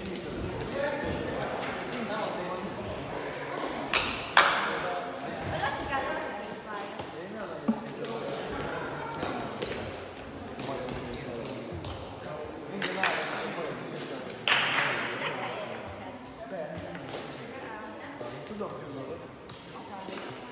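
Shoes squeak on the hard floor.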